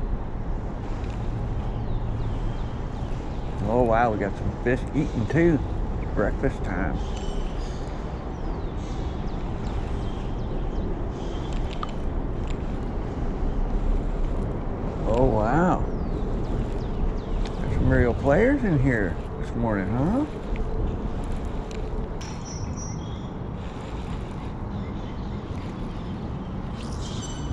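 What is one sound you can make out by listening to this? A fishing reel clicks and whirs as its handle is turned.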